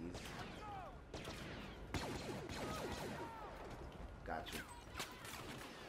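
Laser guns fire in quick bursts.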